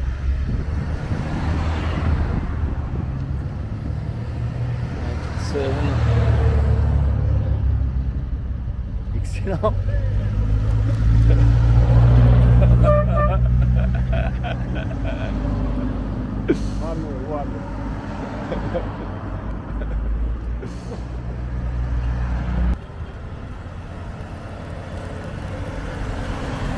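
Classic cars drive past one after another with rumbling engines.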